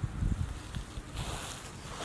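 Two puppies scuffle and tumble on grass.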